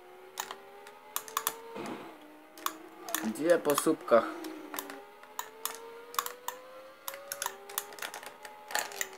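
A video game motorbike engine whines steadily, its pitch slowly rising and dropping with gear changes.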